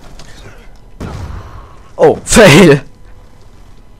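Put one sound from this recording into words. A rifle fires a quick burst of gunshots.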